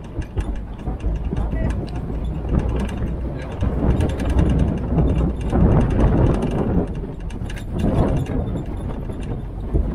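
Tyres crunch and rattle over a gravel track.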